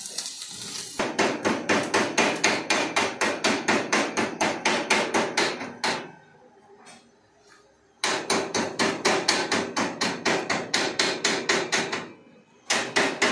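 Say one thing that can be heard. A hammer chips rapidly at metal, tapping in quick bursts.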